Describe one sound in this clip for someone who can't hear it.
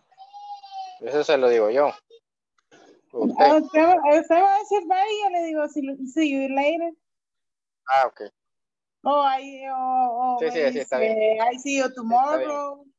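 A young man speaks over an online call, answering.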